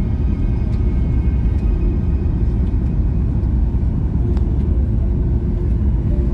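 A jet engine roars with a steady, deep rumble.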